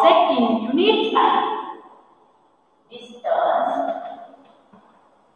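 A woman speaks clearly and with animation close by.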